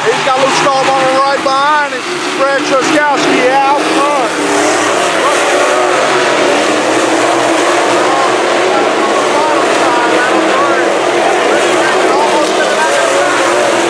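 Racing car engines roar and rev loudly, rising and falling in pitch.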